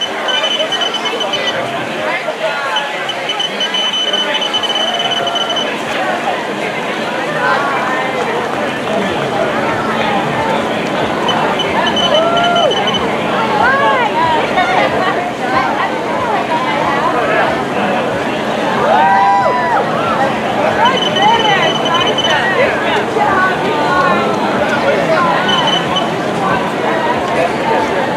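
A crowd of spectators cheers and calls out outdoors.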